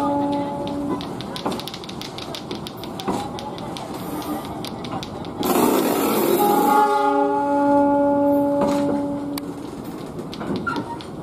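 A train rolls past close by, its wheels clattering rhythmically over the rail joints.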